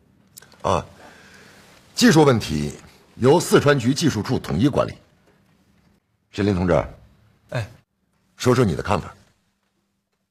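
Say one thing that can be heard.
An elderly man speaks firmly and close by.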